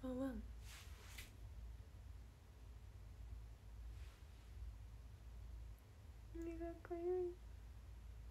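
A young woman speaks softly and briefly close to a microphone.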